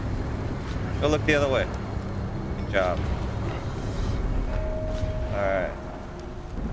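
A man talks into a close microphone in short bursts.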